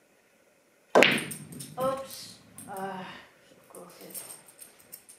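Billiard balls knock together and roll across the table.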